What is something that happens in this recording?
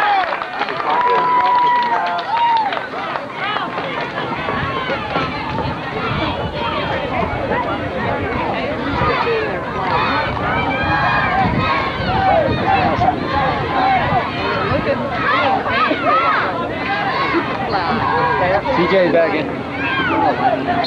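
Young children shout and call out nearby.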